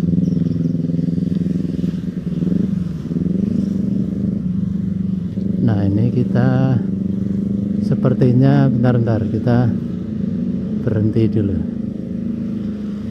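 Motorbike engines hum steadily close by.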